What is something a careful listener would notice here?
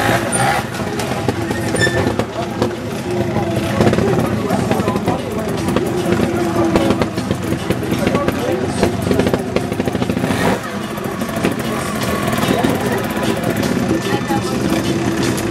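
A motorbike engine idles and revs close by.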